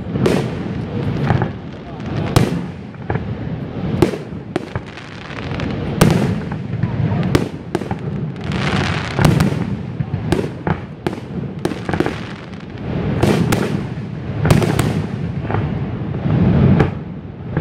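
Fireworks crackle and fizz.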